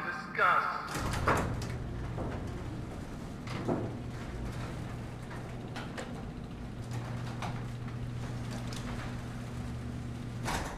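A metal roller shutter rumbles as it rolls open.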